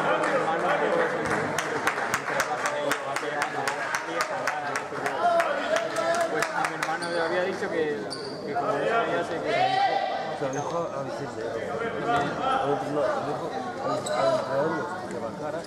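Voices of spectators chatter in a large echoing hall.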